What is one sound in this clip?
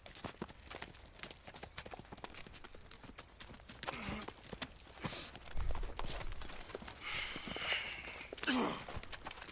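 Horses' hooves clop on a gravel track.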